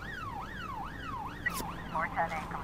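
A police siren wails in fast rising and falling sweeps.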